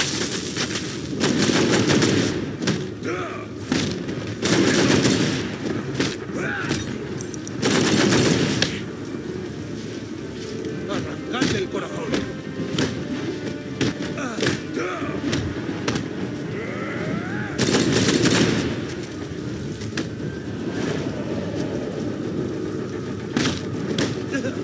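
Heavy punches and kicks land in rapid blows.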